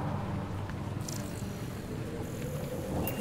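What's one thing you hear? A scanning beam buzzes with a soft electronic tone.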